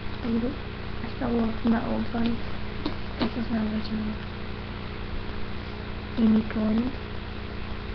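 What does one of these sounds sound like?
A young woman talks casually and close by, heard through a built-in microphone.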